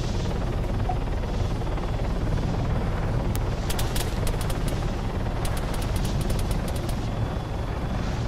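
A helicopter's rotor thumps and its engine roars steadily.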